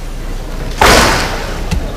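A bamboo sword strikes a fencer's armour with a crack.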